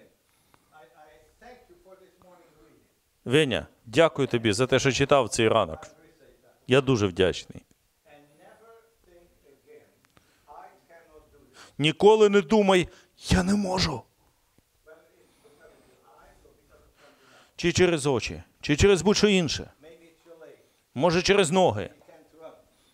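An elderly man speaks with animation in an echoing room, in loud bursts with pauses.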